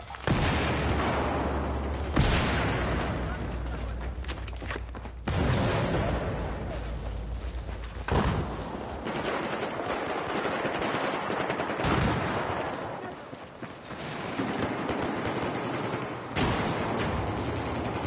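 A rifle fires loud single shots, each followed by a long rumbling echo.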